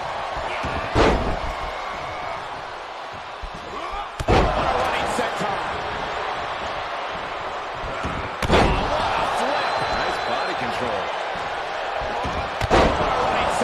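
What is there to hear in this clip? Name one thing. Heavy bodies slam hard onto a wrestling ring mat.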